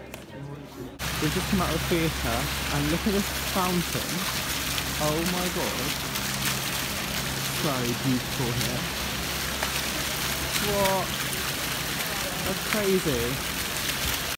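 Fountain jets splash and gurgle steadily into a pool outdoors.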